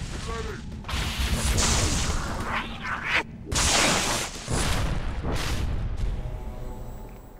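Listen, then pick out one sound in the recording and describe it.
An energy sword slashes with a sharp hum.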